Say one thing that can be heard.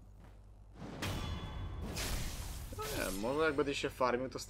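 A sword swishes and slashes.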